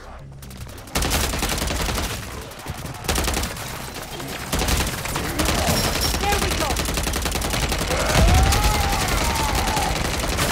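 A submachine gun fires rapid bursts, loud and close.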